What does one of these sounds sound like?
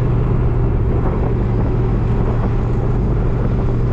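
A zipper rasps open.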